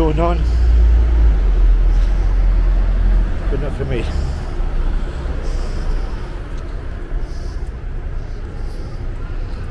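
Footsteps go down concrete stairs.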